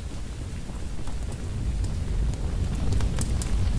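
A fire crackles and roars, growing louder.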